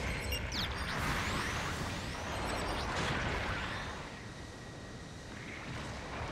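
A giant robot's thrusters roar as it boosts forward.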